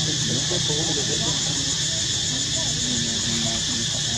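Dry leaves rustle on the ground as a monkey shifts them.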